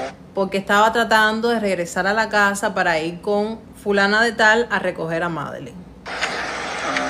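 A woman speaks with animation close to a phone microphone.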